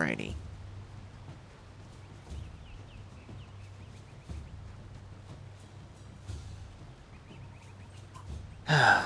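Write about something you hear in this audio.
Footsteps thud heavily on grass at a steady pace.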